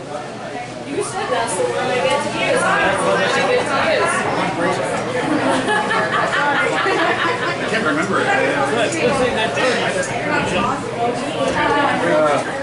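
A man sings into a microphone through loudspeakers.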